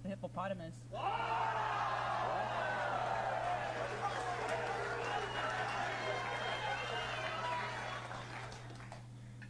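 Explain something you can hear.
A studio audience cheers and applauds through a small speaker.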